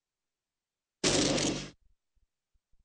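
A short burst of rushing water whooshes loudly.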